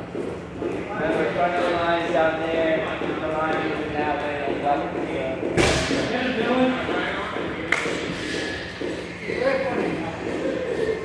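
A man speaks calmly nearby in a large echoing room.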